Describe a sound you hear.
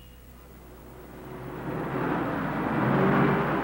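A car engine approaches and grows louder.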